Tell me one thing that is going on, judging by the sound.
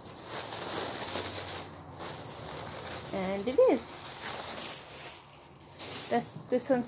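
Plastic sheeting rustles and crinkles close by.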